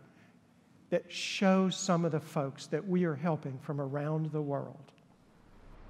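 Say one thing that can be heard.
An elderly man speaks calmly and slowly through a microphone.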